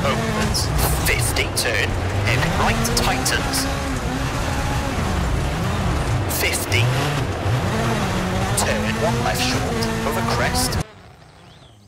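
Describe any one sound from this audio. A rally car engine roars loudly from inside the cabin, revving up and down with the gear changes.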